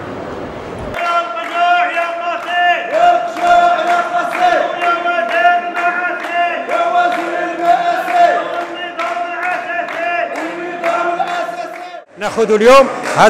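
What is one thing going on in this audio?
A group of men chants in unison.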